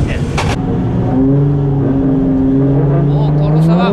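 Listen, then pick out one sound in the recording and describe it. A race car engine revs hard and its pitch climbs steadily.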